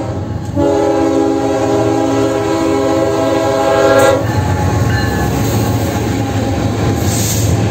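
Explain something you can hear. A freight train rumbles and clatters past on the tracks close by.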